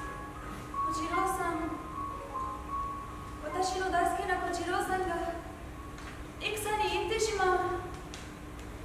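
A woman sings alone in a large hall.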